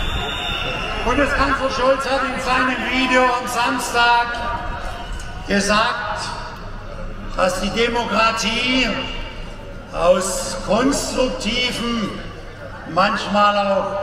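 A man speaks with animation through loudspeakers outdoors.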